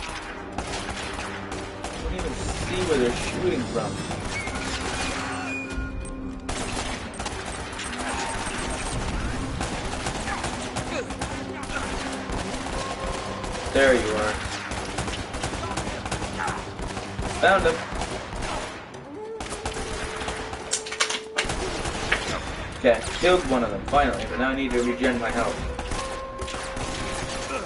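Gunshots crack repeatedly in quick bursts.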